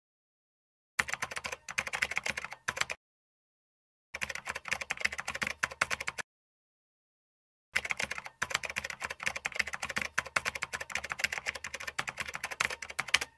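Keys clatter quickly on a computer keyboard in bursts.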